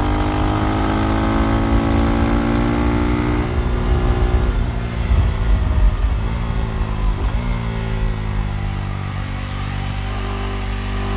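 A motorcycle engine hums steadily, easing off and picking up again.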